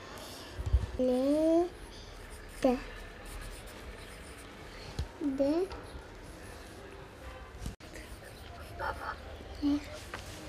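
A young boy speaks briefly in a high voice close by.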